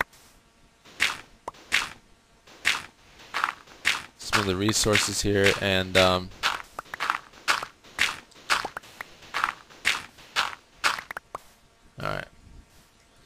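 A shovel digs into sand again and again with soft crunching scrapes.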